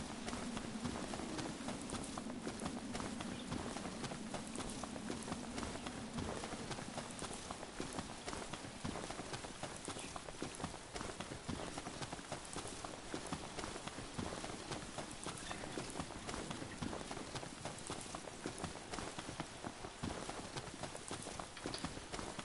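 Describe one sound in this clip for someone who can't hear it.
Footsteps run quickly through grass and brush.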